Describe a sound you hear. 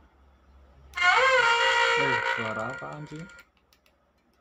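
A loudspeaker gives a loud wavering electronic tone that slides in pitch.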